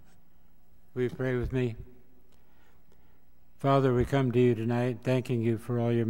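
An older man speaks calmly through a microphone in a large hall.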